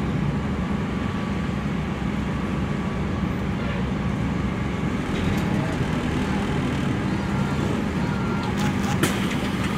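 A crowded bus rattles and creaks as it moves.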